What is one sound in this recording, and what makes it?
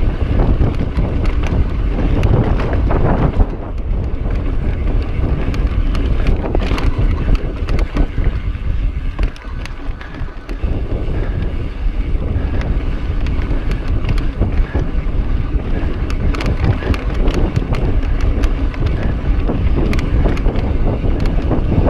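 Bike tyres rumble and crunch over rock and dirt.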